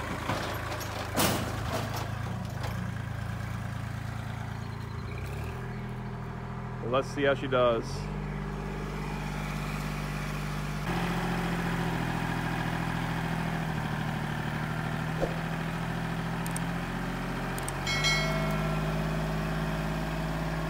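A tractor engine idles and rumbles steadily nearby.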